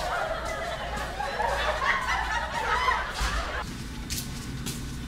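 Footsteps tap on a hard floor in an echoing hallway.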